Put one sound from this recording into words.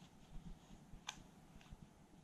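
A thin metal tool pries at the plastic casing of a personal cassette player.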